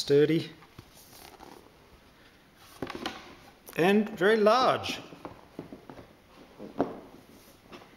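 A folded cardboard board is opened and laid flat with a soft thud.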